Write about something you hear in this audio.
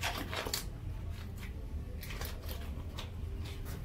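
A rubber glove stretches and snaps onto a hand.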